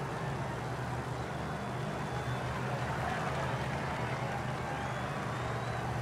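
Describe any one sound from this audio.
A crowd cheers and claps along a roadside.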